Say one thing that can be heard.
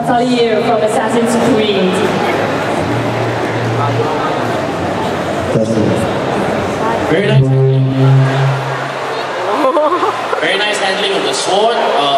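A crowd of people chatters nearby in a large, echoing hall.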